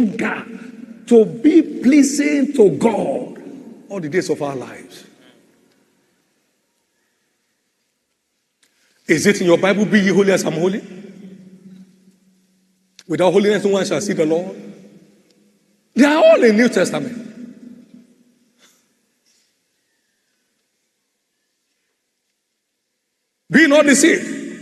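A man preaches loudly through a microphone in a large echoing hall, in short bursts.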